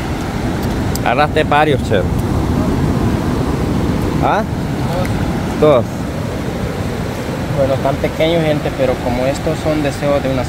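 A young man speaks calmly close by, outdoors.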